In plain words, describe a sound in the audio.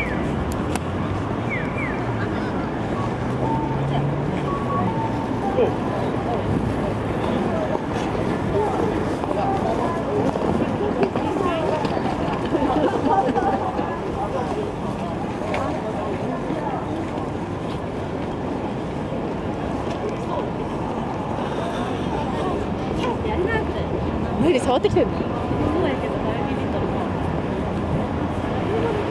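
A busy crowd murmurs and chatters all around outdoors.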